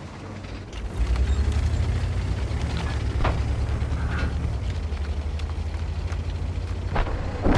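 A tank engine rumbles loudly.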